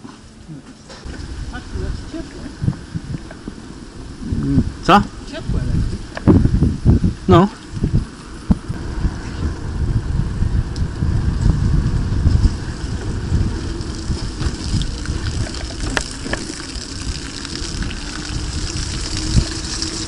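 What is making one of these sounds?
Wind rushes over the microphone while cycling.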